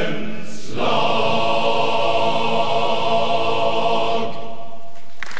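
A large male choir sings a sustained chord in a large hall.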